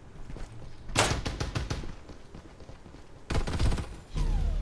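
Gunshots fire in short rapid bursts.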